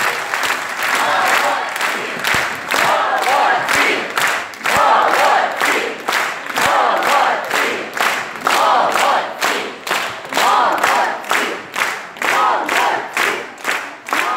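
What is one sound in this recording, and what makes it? A large children's choir sings loudly in an echoing hall.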